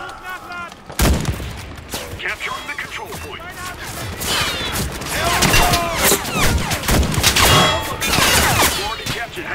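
Gunshots crack repeatedly, close by and far off.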